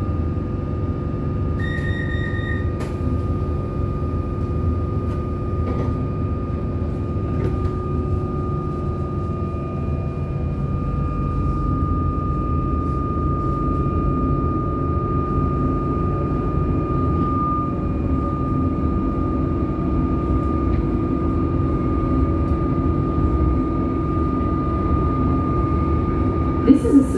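A train motor whines with a steady high hum.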